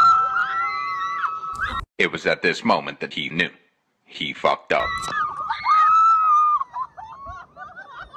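A woman laughs loudly, close by.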